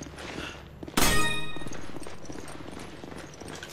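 A loud explosion booms and rings out.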